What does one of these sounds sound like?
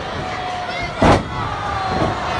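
A body thuds heavily onto a wrestling ring mat.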